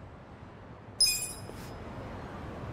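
A game menu gives a short bright chime.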